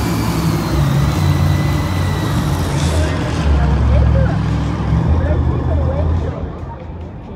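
A monster truck engine roars loudly in a large echoing arena.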